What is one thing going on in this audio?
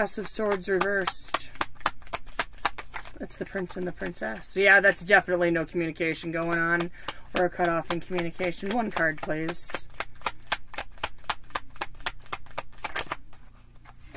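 Playing cards riffle and flick rapidly as they are shuffled.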